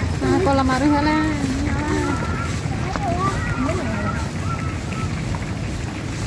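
Water bubbles and splashes softly in a pool.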